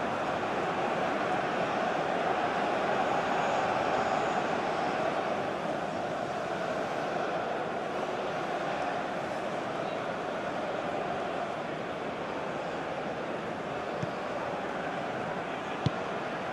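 A large stadium crowd roars and chants steadily throughout.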